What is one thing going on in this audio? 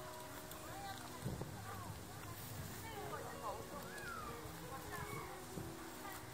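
A young child talks nearby.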